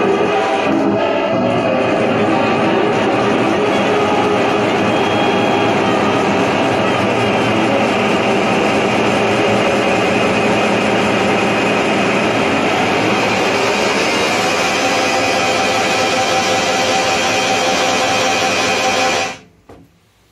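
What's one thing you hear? Electronic sounds pulse from a sampler being played.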